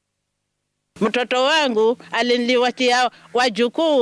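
An elderly woman speaks with emotion, close to a microphone.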